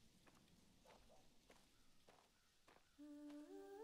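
Footsteps crunch slowly over dry leaves and gravel.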